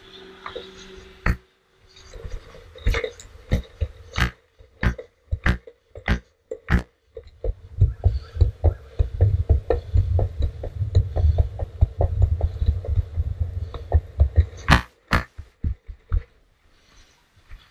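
Skateboard wheels roll and rumble over concrete, clicking over the pavement joints.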